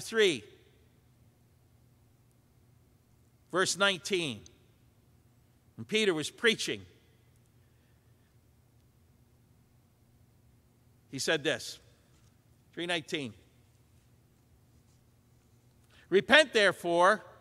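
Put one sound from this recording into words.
An elderly man preaches through a microphone in short bursts, with long pauses.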